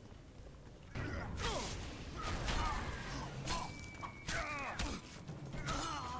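Blades swish and clash in a fight.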